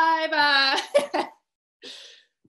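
A young woman laughs brightly, heard over an online call.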